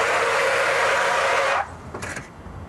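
Smoke hisses and roars out of a car.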